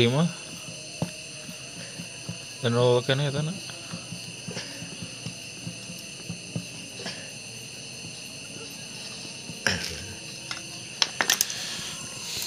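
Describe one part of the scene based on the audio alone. A metal tool clicks and scrapes against engine parts.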